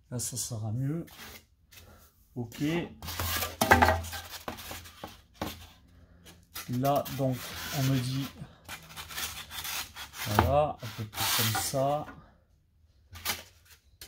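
Foam boards scrape and squeak as they are handled and slid together.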